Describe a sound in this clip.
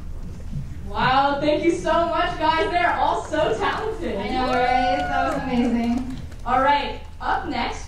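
A young woman talks through a microphone over loudspeakers in a large hall.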